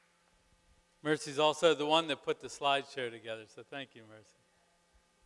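A man speaks briefly through a loudspeaker in a large hall.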